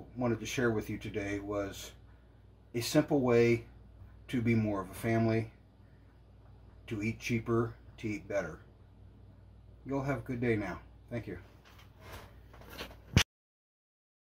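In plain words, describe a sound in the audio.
A middle-aged man talks calmly and close to the microphone, pausing between phrases.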